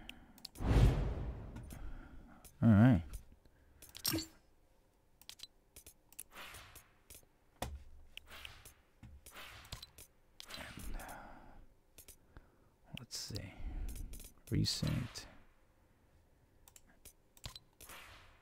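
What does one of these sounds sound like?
Short menu clicks sound now and then.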